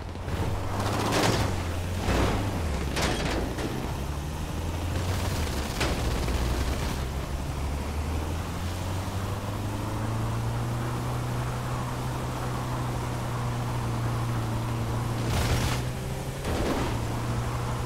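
A van's body thumps and rattles over rough ground.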